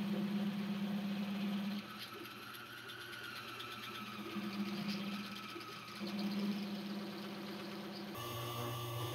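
A step drill bit grinds through sheet metal.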